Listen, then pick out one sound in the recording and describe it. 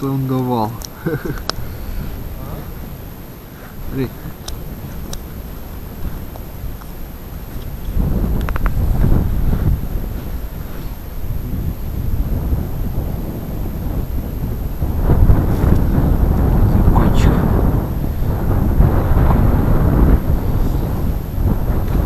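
Wind blows across the microphone outdoors, gusting louder at times.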